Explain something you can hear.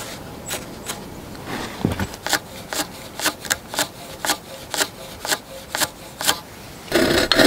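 A pencil scratches short marks on wood.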